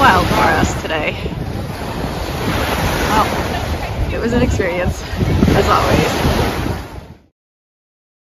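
Waves wash onto a sandy shore.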